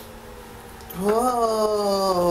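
A young girl laughs in a high, sing-song voice.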